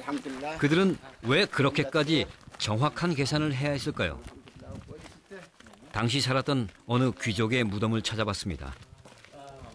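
A man speaks calmly outdoors.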